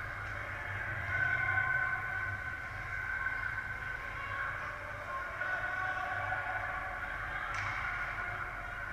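Skates scrape and hiss across ice.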